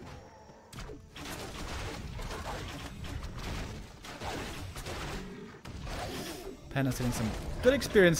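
Swords clash and spells crackle in a video game battle.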